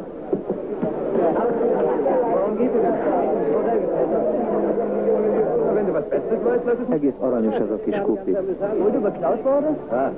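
A crowd of men chatters and calls out in a busy room.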